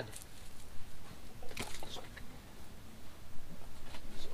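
A canvas sheet rustles as it is draped and smoothed.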